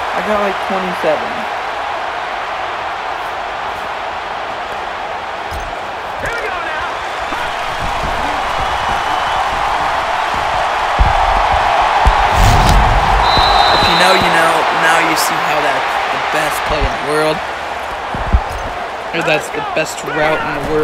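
A large crowd roars steadily in a stadium, swelling louder for a while before easing off.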